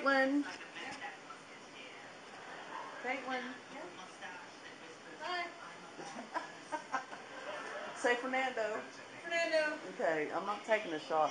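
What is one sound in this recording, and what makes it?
A young boy talks casually.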